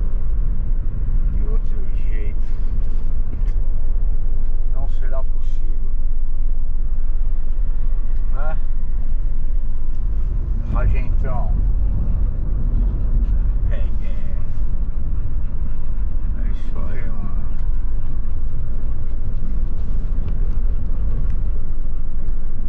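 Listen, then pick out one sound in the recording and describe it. A car engine and tyres rumble steadily from inside a moving car.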